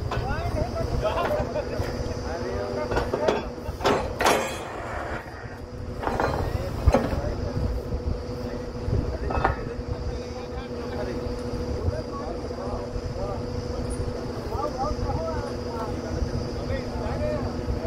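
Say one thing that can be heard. A drilling rig's engine runs with a steady hum outdoors.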